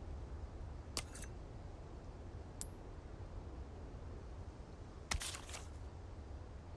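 Short interface clicks and swishes sound several times.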